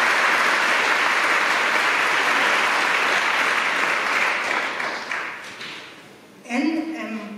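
An audience applauds in a large hall, and the clapping fades out.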